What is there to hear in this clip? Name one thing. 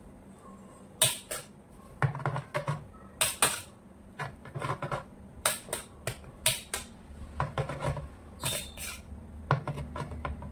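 A metal spatula taps and clinks against a cake stand.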